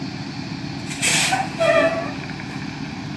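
Air brakes release with a sharp hiss.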